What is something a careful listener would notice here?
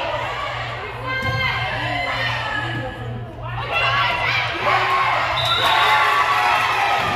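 Players' sneakers squeak sharply on a gym floor.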